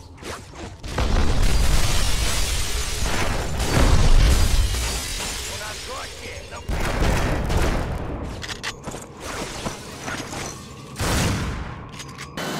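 Guns fire in loud, booming bursts.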